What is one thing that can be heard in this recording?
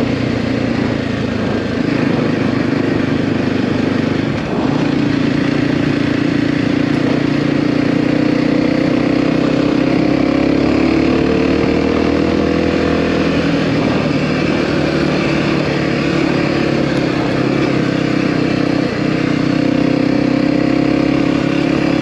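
Tyres rumble over a rough dirt track.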